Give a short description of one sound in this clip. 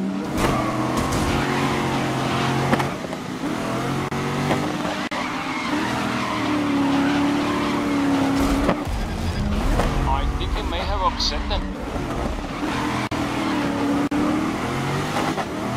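Tyres screech while sliding through corners.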